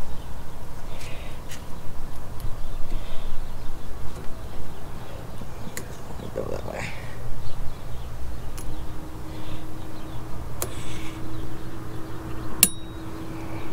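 Metal parts click and clink.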